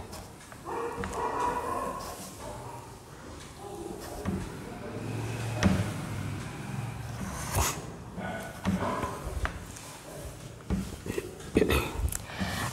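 A felt eraser rubs and squeaks across a whiteboard.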